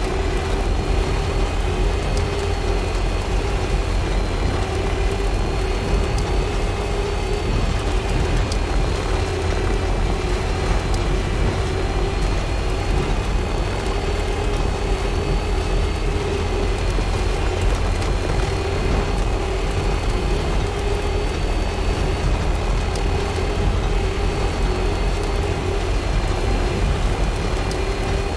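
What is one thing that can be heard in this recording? Tyres roll over a wet road.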